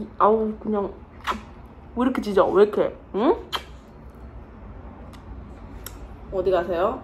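A young woman speaks close by in a playful, animated voice.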